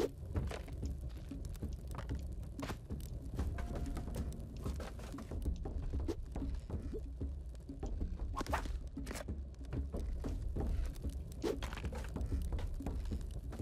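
Short video game sound effects click and thump again and again.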